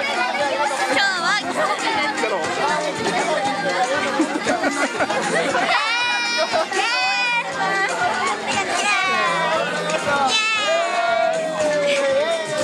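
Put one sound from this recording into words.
Girls laugh and shout excitedly close by.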